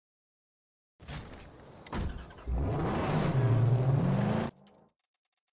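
A car engine roars and revs up.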